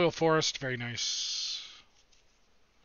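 Playing cards rustle and slide against each other in someone's hands.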